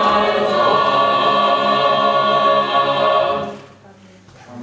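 A choir of young men and women sings together, holding a final chord.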